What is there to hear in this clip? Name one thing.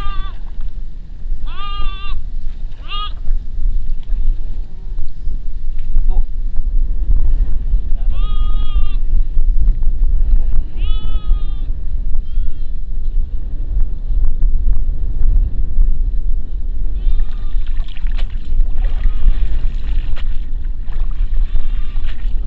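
Wind blusters across the microphone outdoors.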